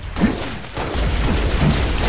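Grenades explode with deep booms.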